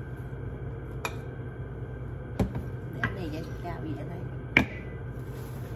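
Glass and wooden objects clink and knock on a counter.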